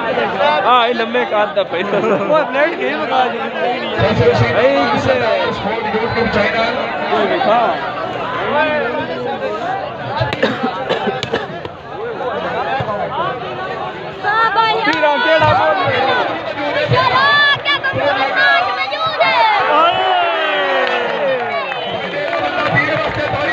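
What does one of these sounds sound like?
A large outdoor crowd of men chatters and shouts.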